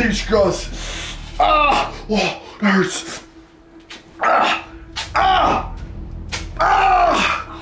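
Duct tape rips and crinkles as a man pulls at it.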